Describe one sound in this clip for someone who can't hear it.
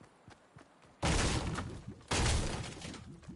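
A pickaxe strikes a wall with loud, crashing blows.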